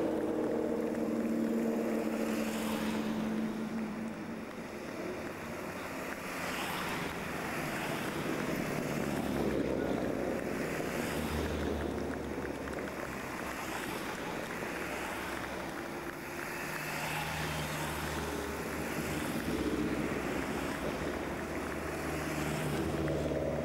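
Rally car engines rev and whine as cars pass one after another.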